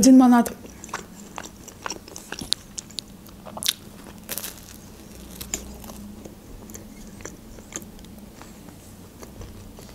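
A young woman chews and bites bread with soft, wet, crunchy sounds close to the microphone.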